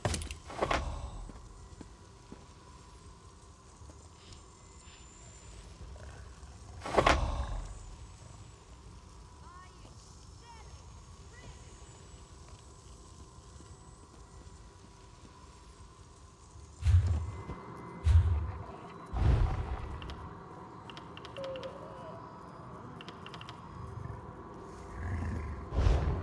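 Game menu clicks and chimes sound sharply now and then.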